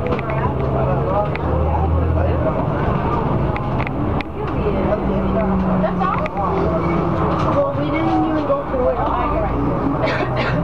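A vehicle engine hums steadily from inside while driving.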